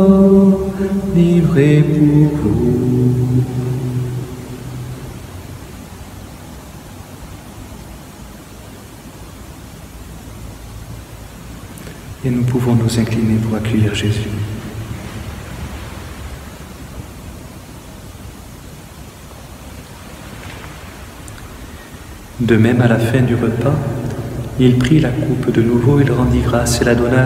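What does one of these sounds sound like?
A man chants slowly in a large echoing hall.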